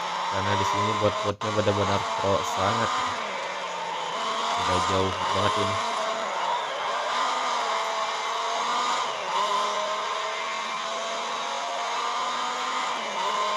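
A racing car engine roars at high revs and shifts gears.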